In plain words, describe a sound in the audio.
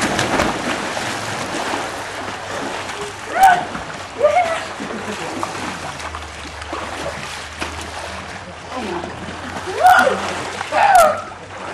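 Water splashes as people swim.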